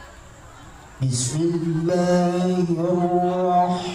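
A man chants in a long, melodic recitation through a loudspeaker, with an echo.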